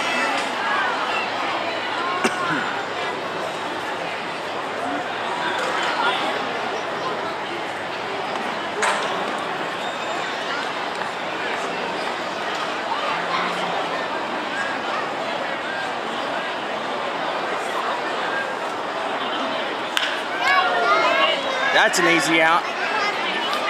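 A crowd of spectators murmurs and chatters nearby.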